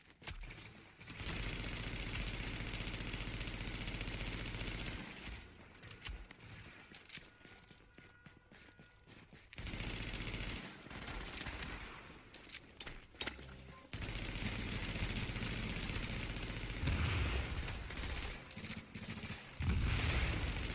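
Rifle gunfire rattles in rapid, loud bursts.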